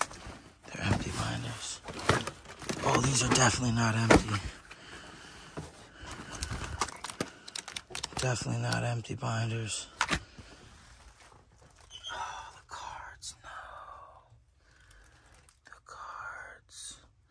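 Cardboard boxes rustle and scrape as they are pushed aside.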